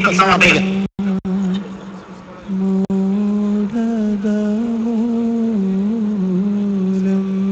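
A group of men sings a slow, steady chant.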